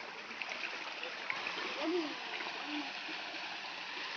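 Water trickles and splashes over stones.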